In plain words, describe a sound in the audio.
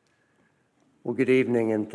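An older man begins speaking into a microphone.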